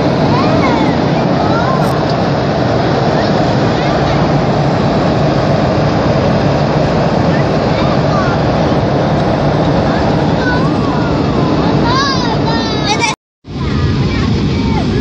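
Jet engines roar steadily inside an airplane cabin.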